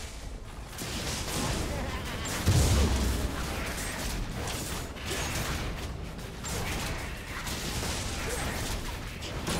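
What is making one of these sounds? Weapons clash and spells crackle in a fast video game fight.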